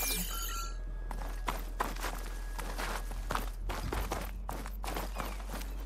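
Quick footsteps run over soft ground.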